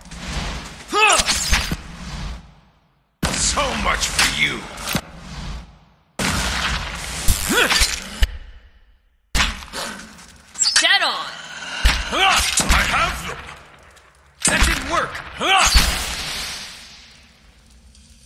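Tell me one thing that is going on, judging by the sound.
Magic spell blasts crackle and boom in a video game battle.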